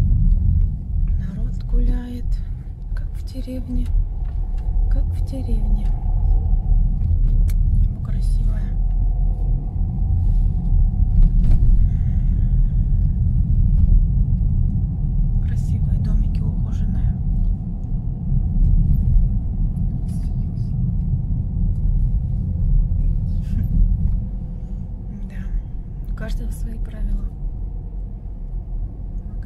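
A car engine hums steadily with a low road rumble from inside the car.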